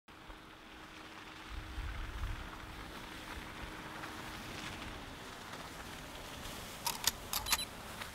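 A car drives slowly over slushy road.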